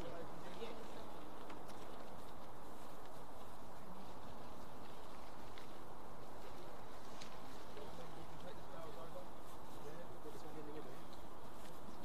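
A woman reads aloud calmly at a distance, outdoors.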